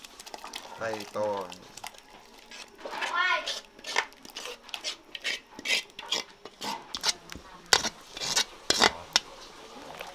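A spoon scrapes and knocks against a metal wok.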